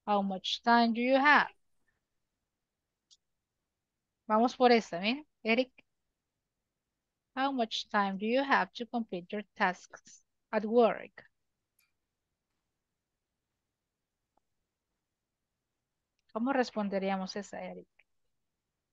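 A young woman speaks calmly through an online call, in short bursts with pauses.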